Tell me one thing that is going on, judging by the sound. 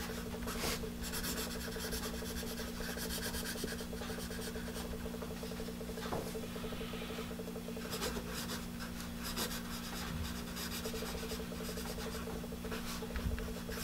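A pencil scratches and scrapes across paper close by.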